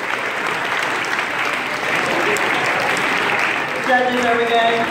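A large crowd cheers and whoops in an echoing hall.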